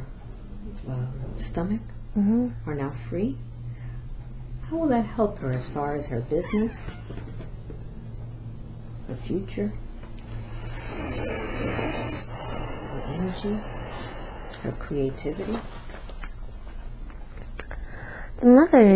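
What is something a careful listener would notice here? A woman speaks softly and weakly, close by, with pauses.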